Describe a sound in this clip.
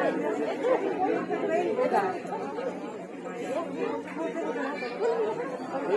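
A woman speaks loudly and with animation.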